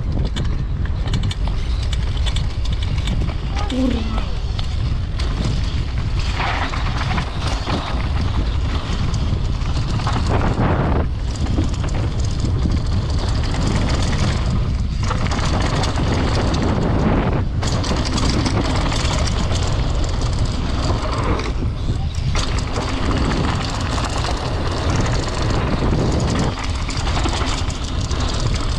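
Wind roars loudly past the microphone.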